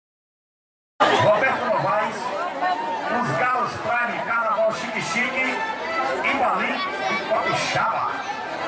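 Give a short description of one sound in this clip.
A crowd chatters.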